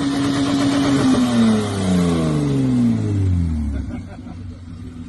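A truck engine revs and then winds down.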